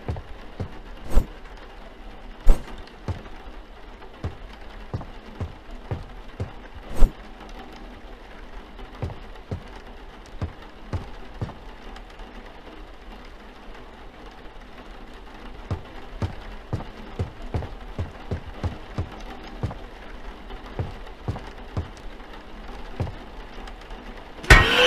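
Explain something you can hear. Footsteps thud steadily across a floor.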